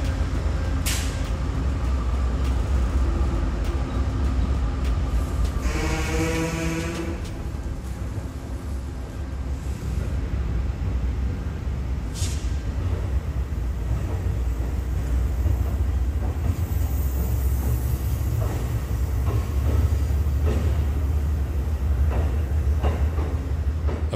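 A passenger train rumbles slowly past with a low steady roar.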